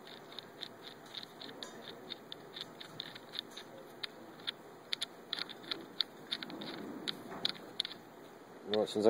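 Small metal parts click and tick as a nut is turned by hand.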